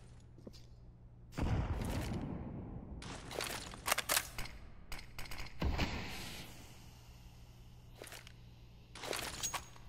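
A weapon clicks and rattles as it is swapped in hand.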